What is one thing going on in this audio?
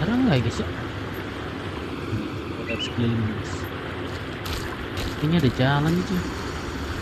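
A young man talks briefly and casually into a microphone.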